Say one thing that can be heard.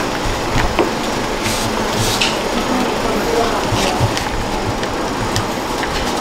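A paper envelope rustles as it is opened and handled.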